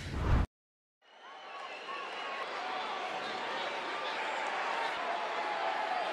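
A large crowd cheers in an echoing arena.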